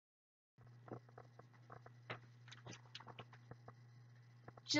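Book pages rustle and tap as a book is handled.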